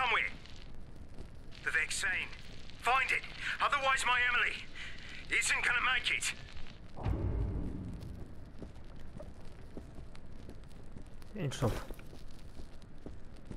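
Flames crackle steadily.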